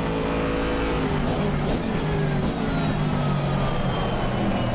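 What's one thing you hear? A racing car engine falls in pitch as the car slows and shifts down.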